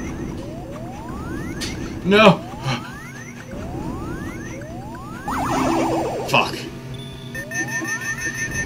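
Upbeat electronic game music plays steadily.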